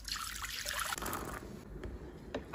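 Small balls splash into water.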